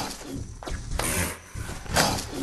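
A hippo roars loudly.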